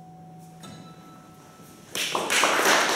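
An acoustic guitar chord rings softly and fades.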